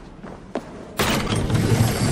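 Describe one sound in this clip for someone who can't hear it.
A heavy crash bursts close by.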